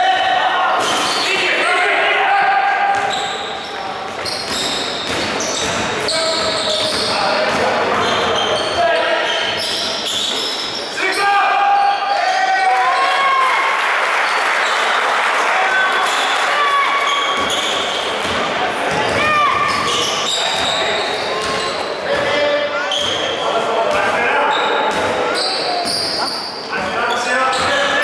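Spectators chatter and call out in a large echoing hall.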